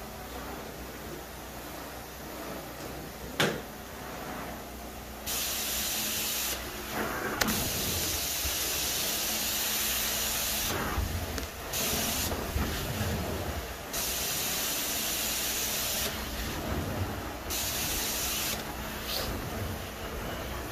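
A carpet cleaning wand hisses and sucks as it slides over carpet, the spray cutting in and out.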